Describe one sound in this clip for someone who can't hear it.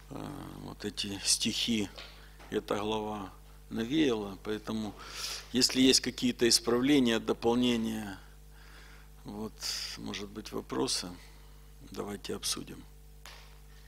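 A middle-aged man speaks calmly and with animation into a close microphone.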